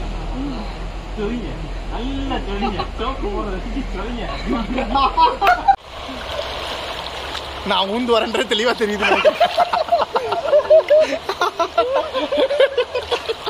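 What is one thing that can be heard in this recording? Several men talk and laugh together close by, outdoors.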